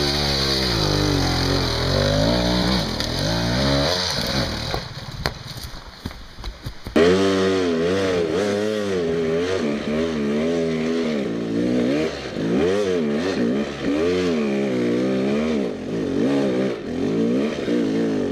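A dirt bike engine revs and sputters up close, rising and falling in pitch.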